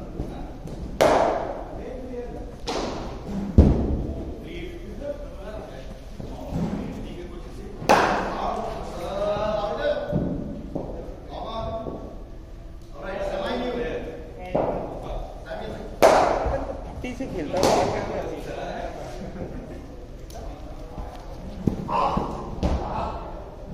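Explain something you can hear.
A cricket bat cracks against a leather ball in an echoing indoor hall.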